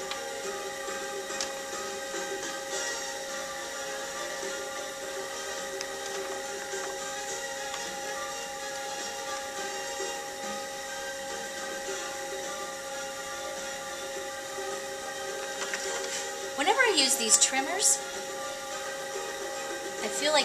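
A potter's wheel motor hums steadily.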